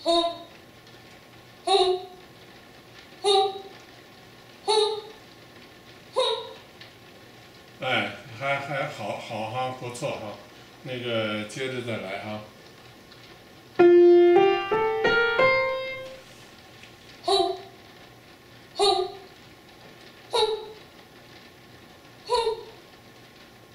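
A young woman sings short, clear notes over an online call, one every second or so.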